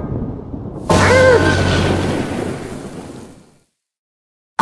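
Thunder crashes and rumbles away.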